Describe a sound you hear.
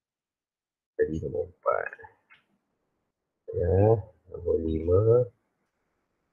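A man speaks calmly over an online call, in short phrases.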